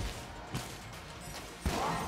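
Video game shots pop in quick bursts.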